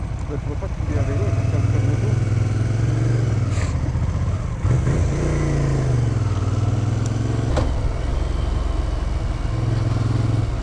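A motorcycle engine revs and rides off, its pitch rising and falling.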